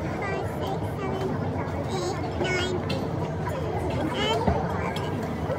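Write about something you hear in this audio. Young women talk and laugh softly nearby.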